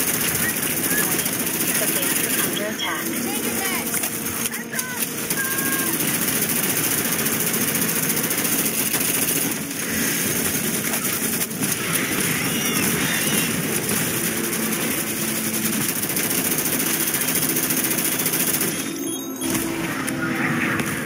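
Rapid gunfire rattles almost without pause.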